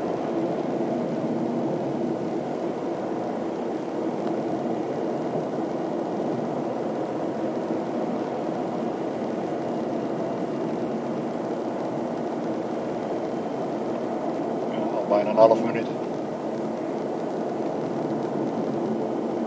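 A vehicle engine hums steadily close by.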